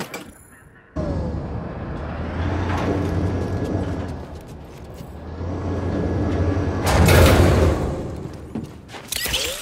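A deep machine hum rumbles steadily.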